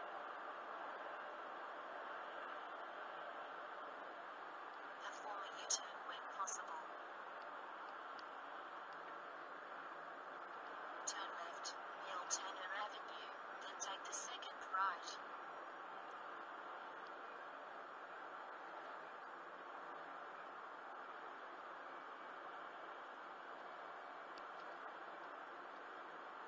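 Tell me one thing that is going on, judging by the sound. A car's engine and tyres hum steadily from inside the car on a highway.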